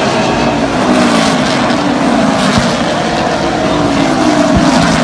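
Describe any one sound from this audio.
Engines whine, rising and falling in pitch as cars pass by.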